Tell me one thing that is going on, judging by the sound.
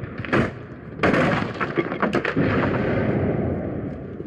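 Wooden boards crack and splinter loudly.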